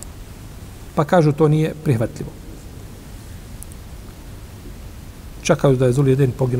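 An older man speaks calmly and slowly into a close microphone, with long pauses.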